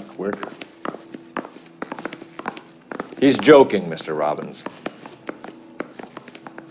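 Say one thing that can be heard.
Footsteps walk at a steady pace across a hard floor.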